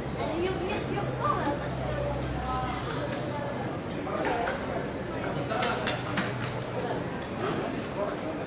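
Men talk in the distance, heard across an open stadium.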